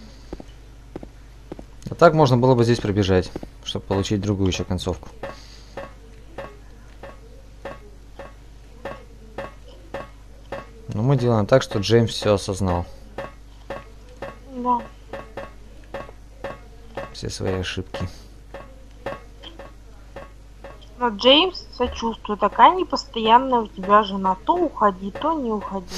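Footsteps clang steadily on metal stairs.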